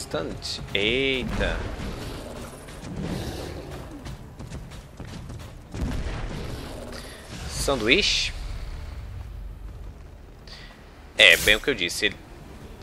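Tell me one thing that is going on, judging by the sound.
A monstrous creature lets out shrill, warbling screeches.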